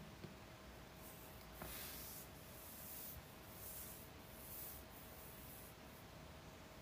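A young woman breathes softly close by.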